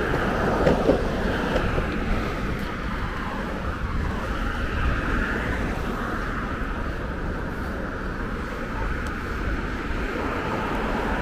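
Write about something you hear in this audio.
Skateboard wheels roll steadily over a paved path.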